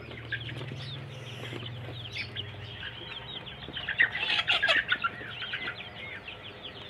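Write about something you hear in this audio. Young chickens cheep and peep busily, close by.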